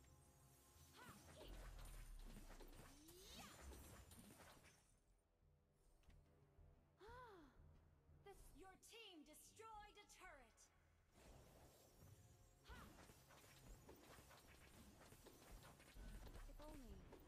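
Fantasy battle sound effects of spells and strikes play in a mobile game.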